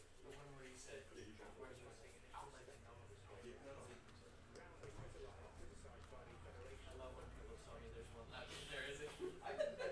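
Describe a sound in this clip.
Cards slide and flick in hands.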